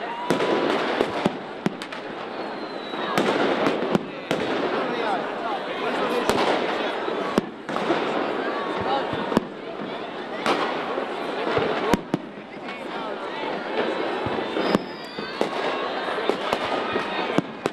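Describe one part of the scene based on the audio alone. Fireworks bang and crackle overhead, outdoors.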